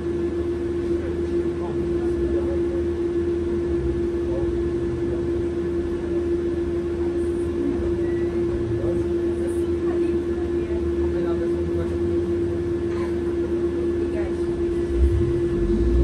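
A bus engine idles with a steady hum.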